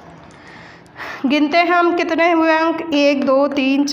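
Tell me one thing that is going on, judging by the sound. A young woman speaks clearly and loudly nearby, as if teaching.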